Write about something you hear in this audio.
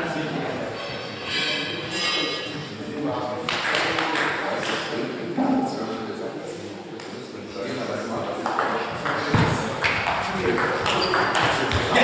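A table tennis ball clicks back and forth on paddles and a table in an echoing hall.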